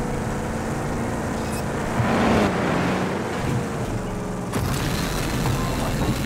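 A vehicle engine rumbles steadily as it drives.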